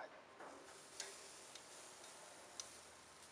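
Metal tongs click against a grill grate.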